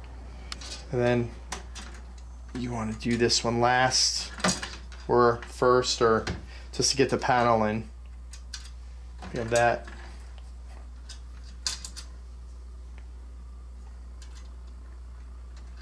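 Small metal parts click and tap as hands fit them into place.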